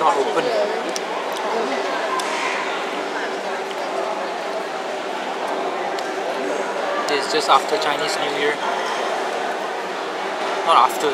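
A crowd of people chatter all around in a large, echoing hall.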